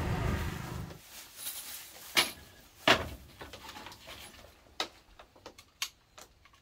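Tools click and knock on a wooden floor.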